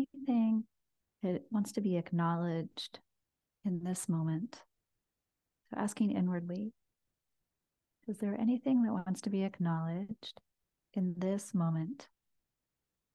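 A young woman speaks softly and calmly, close to a microphone, in short phrases with pauses.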